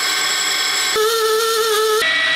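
A drill whirs into metal.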